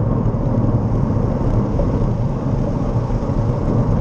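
A bus engine hums close by.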